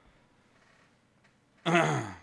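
A young man speaks quietly and close into a microphone.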